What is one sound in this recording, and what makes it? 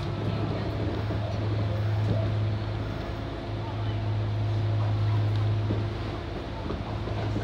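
Wheels rumble and click over the rails.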